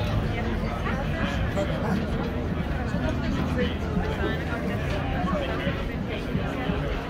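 Many footsteps shuffle along.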